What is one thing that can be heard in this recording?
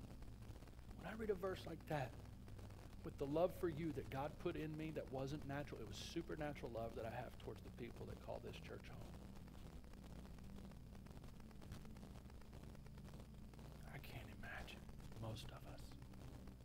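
A man speaks calmly and slowly into a microphone, with long pauses.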